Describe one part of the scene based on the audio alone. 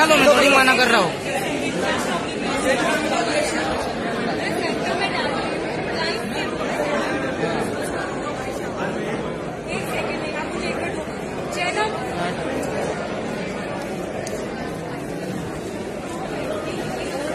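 A crowd of men and women chatter loudly nearby.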